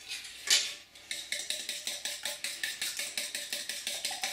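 A fork whisks quickly in a metal bowl.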